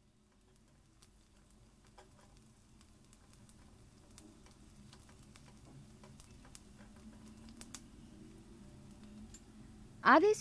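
A spatula scrapes and taps against a metal pan.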